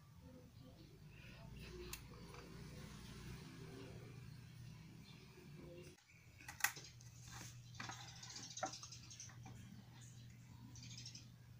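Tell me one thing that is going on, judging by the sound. Hard plastic toys knock and rattle as a hand handles them.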